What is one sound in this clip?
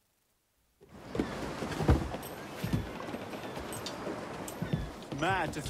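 A man speaks nearby.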